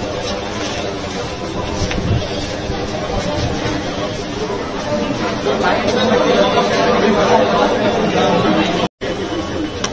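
A crowd of people murmurs and talks nearby.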